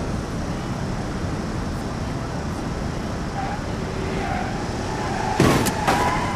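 Tyres rumble and hiss over a snowy road.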